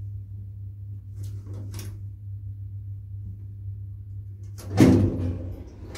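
Elevator buttons click as they are pressed.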